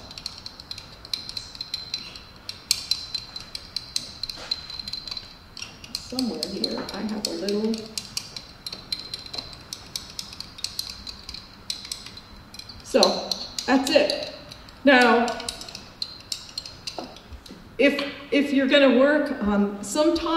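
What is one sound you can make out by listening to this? A metal tool clinks and taps against a small glass jar.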